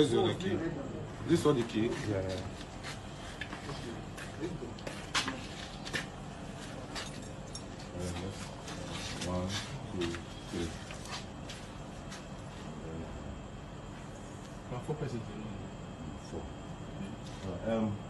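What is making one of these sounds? Men talk with animation close by, heard through a phone's microphone.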